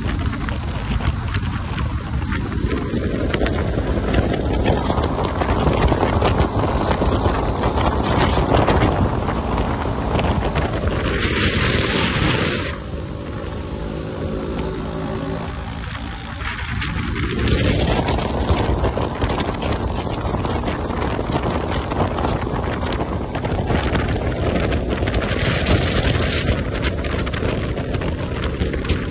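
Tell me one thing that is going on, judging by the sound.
A motorcycle engine roars and revs up and down as it speeds along.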